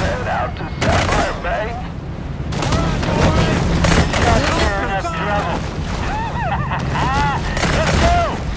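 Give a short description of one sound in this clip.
Boat motors hum low and steady.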